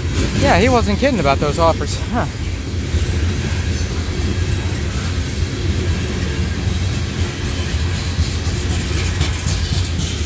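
Freight cars rumble steadily past, close by.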